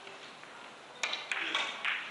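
A cue strikes a billiard ball with a sharp click.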